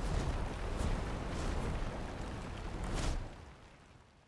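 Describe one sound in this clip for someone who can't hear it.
A rocket launches with a deep, thundering roar.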